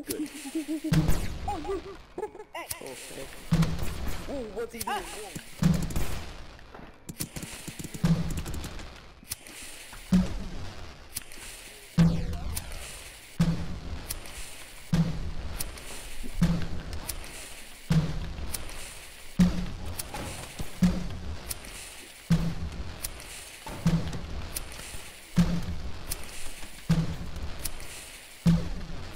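Magic blasts fire again and again with heavy thumps and sparkling whooshes.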